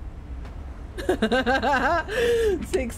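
A young woman laughs into a close microphone.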